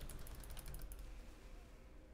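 Magic spells burst and crackle in quick bursts.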